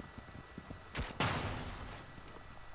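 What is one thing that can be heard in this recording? Glass shatters loudly as a window is smashed in.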